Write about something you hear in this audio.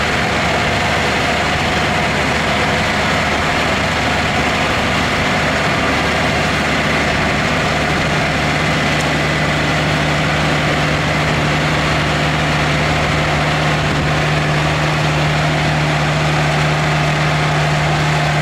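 A harvester rattles and clanks as it lifts crops from the soil.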